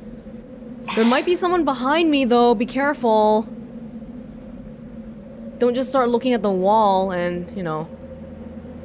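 A young woman speaks quietly and tensely, close by.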